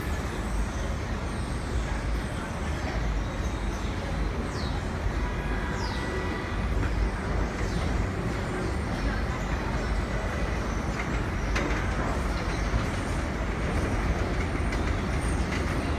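A train rumbles closer on rails.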